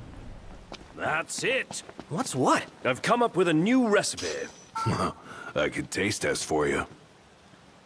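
A man speaks calmly, close up.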